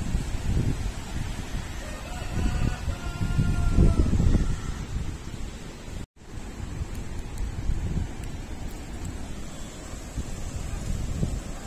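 Wind gusts outdoors, buffeting the microphone.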